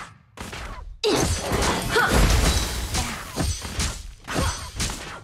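Sharp hits land one after another.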